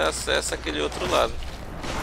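A sword strikes with a sharp clang.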